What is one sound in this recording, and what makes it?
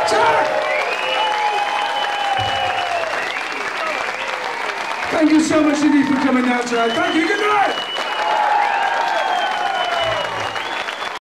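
A rock band plays loudly through speakers.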